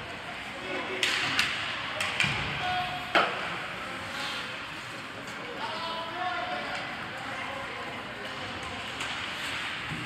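Hockey sticks clack and a puck thuds against the boards in a large echoing arena.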